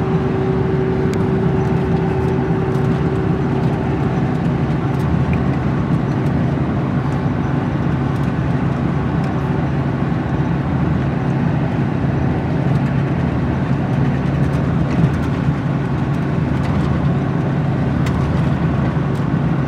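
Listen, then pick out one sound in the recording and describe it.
Tyres roll on the road surface with a steady rumble.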